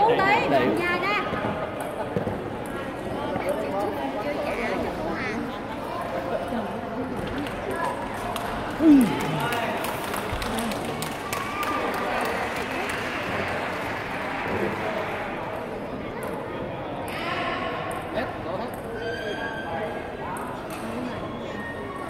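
A table tennis ball clicks back and forth off paddles and the table in a large echoing hall.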